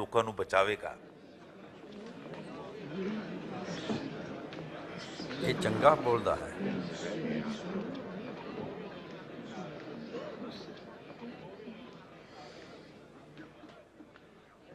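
A crowd murmurs quietly in an echoing hall.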